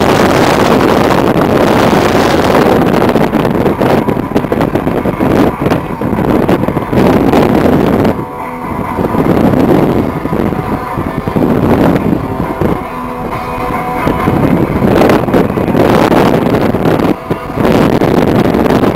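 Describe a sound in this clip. Wind buffets loudly and steadily against the microphone from a moving car window.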